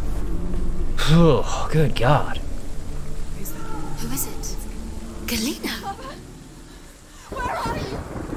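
A man talks through a headset microphone.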